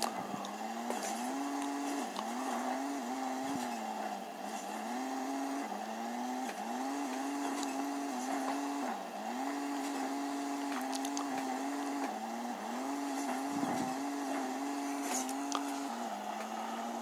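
A truck engine drones steadily, revving up and dropping back again and again.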